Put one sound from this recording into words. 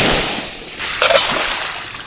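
A metal lid clinks against a metal pot.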